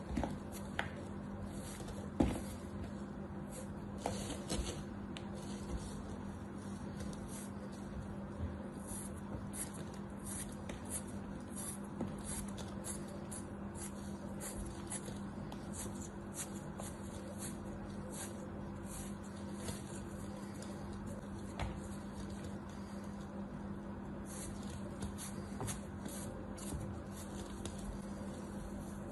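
A small plastic tool scrapes and scratches softly at crumbly sand.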